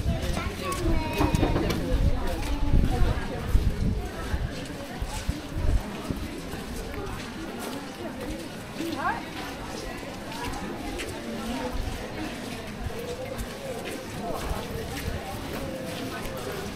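People murmur in the distance outdoors.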